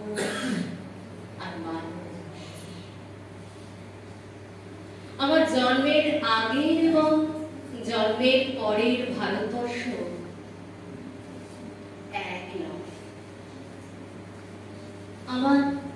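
A woman recites expressively into a microphone, heard through a loudspeaker.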